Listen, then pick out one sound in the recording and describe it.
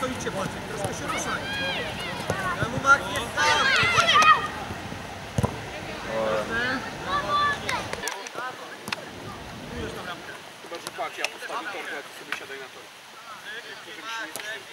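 Children shout and call out excitedly outdoors.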